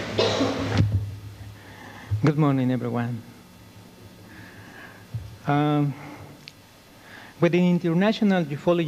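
A man speaks slowly and formally into a microphone, echoing in a large hall.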